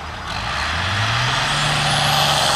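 A tractor engine revs up higher.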